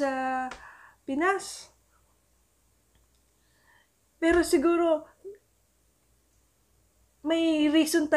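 A young woman speaks calmly into a close microphone, in short phrases with pauses.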